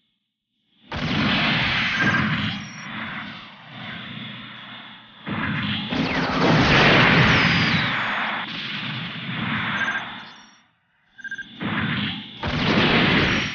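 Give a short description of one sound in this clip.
Beam weapons fire with sharp zaps.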